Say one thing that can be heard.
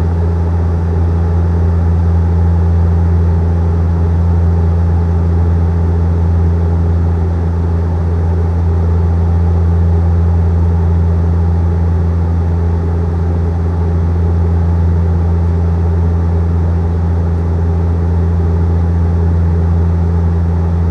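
A jet airliner's engines drone with a steady, deep hum.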